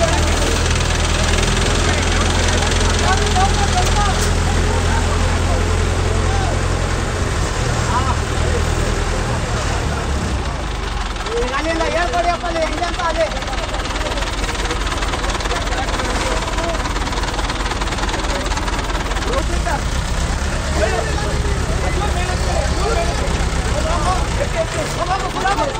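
A heavy engine rumbles steadily nearby.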